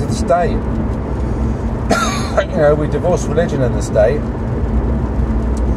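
A car engine hums low and steady inside the cabin.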